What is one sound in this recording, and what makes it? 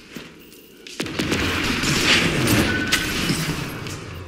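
Sparks burst with a loud fizzing crash.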